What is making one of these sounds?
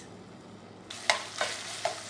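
A spoon scrapes through meat in a pan.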